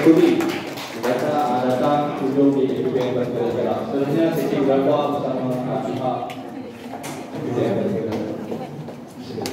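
Several adults chat close by, talking and laughing.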